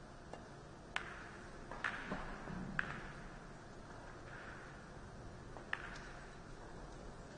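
Pool balls click against each other and roll on the cloth.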